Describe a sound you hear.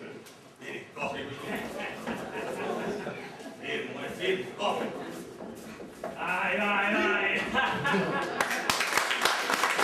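Men speak loudly and with animation, heard from a distance in a hall.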